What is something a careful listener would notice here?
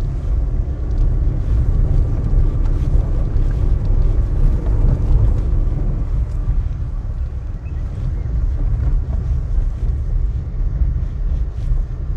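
Tyres crunch over a dirt and gravel track.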